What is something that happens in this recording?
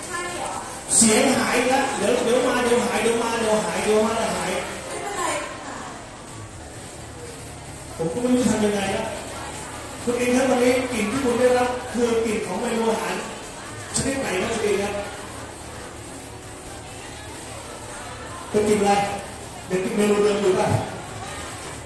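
A woman speaks with animation through a loudspeaker microphone.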